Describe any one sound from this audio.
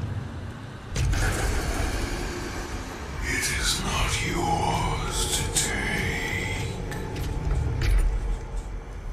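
A heavy machine rumbles and whirs as it rises.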